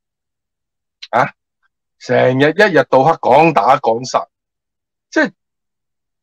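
A middle-aged man speaks with animation over an online call.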